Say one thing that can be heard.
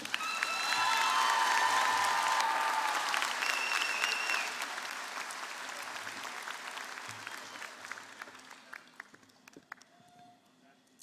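A large crowd cheers and applauds in a big echoing hall, then fades.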